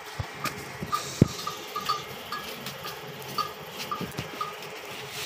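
A cow shuffles its hooves on a hard floor.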